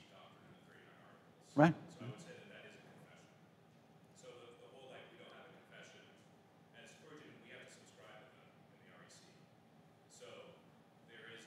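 A middle-aged man speaks calmly to an audience in a large echoing hall.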